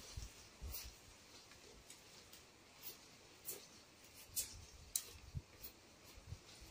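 Dry palm leaves rustle and swish as they are woven by hand.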